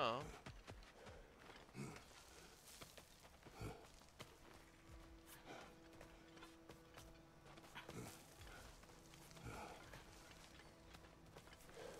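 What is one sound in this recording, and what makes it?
Hands and boots thud and scrape on rock during a climb.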